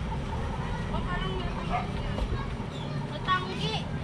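A child talks nearby outdoors.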